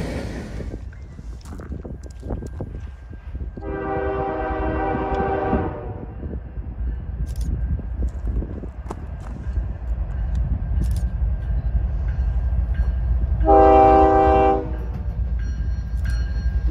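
A locomotive rumbles as it approaches, growing louder.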